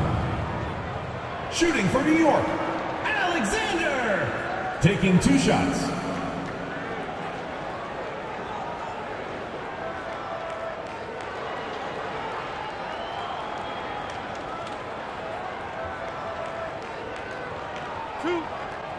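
A crowd murmurs steadily in a large arena.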